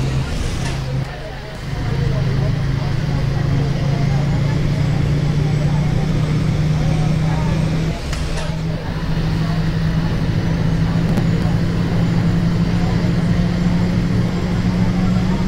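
A bus engine hums steadily and rises in pitch as the bus speeds up.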